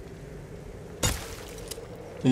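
A bowstring twangs as an arrow is loosed.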